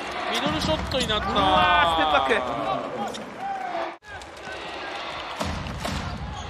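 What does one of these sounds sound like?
A crowd cheers and claps in a large echoing arena.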